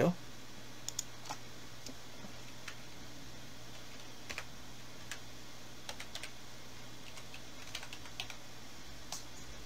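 Keys click softly on a computer keyboard.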